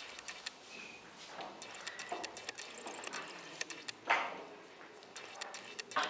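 Wooden chess pieces tap and clack on a board.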